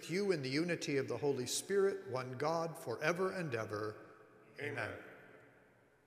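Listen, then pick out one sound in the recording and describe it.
An elderly man chants through a microphone in a large echoing hall.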